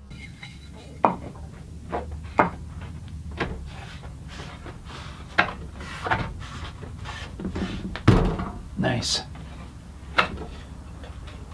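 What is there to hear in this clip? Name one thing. Wooden boards knock and clatter on a bench.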